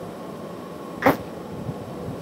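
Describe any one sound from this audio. A metal rod knocks sharply against glass once.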